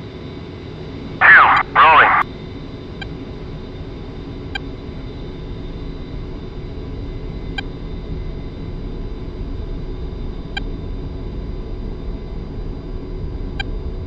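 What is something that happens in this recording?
A jet engine roars steadily and slowly grows louder.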